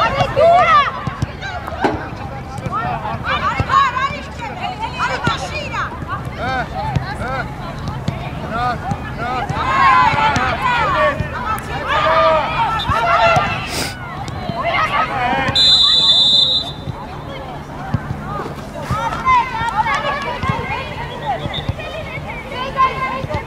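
Young women shout and call to each other across an outdoor pitch.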